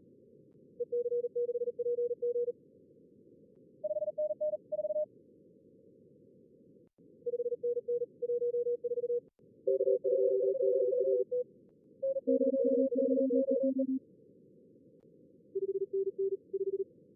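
Morse code beeps in short bursts come through a radio receiver.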